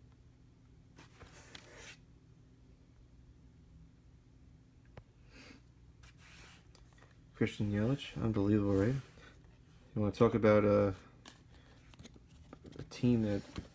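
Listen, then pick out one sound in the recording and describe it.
Trading cards slide and rustle softly against each other in hands.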